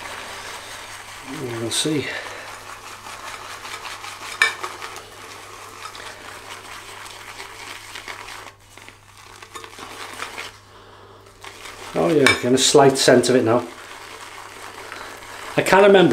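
A cloth rubs against a wooden bowl.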